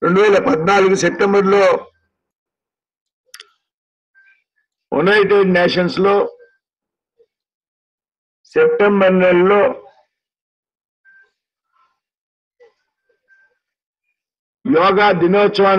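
A middle-aged man gives a speech loudly through a microphone and loudspeakers, in bursts with pauses.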